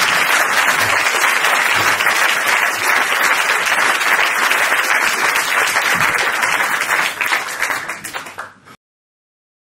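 An audience applauds loudly and cheers in an echoing hall, then the sound cuts off.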